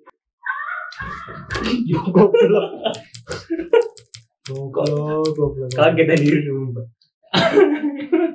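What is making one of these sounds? Two young men laugh loudly.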